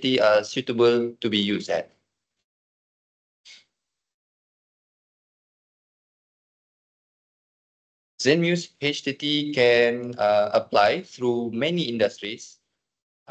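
A young man talks steadily through an online call, pausing briefly.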